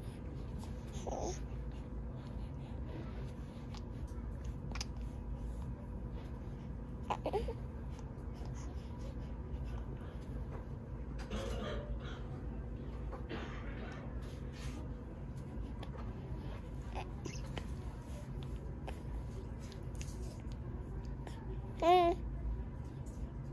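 A baby coos and babbles softly, close by.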